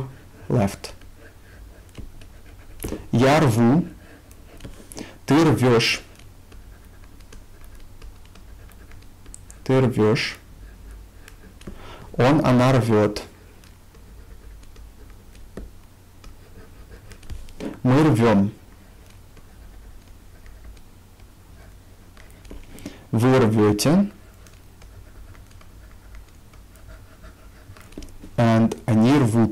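A young man speaks calmly and clearly into a close microphone, in short bursts with pauses.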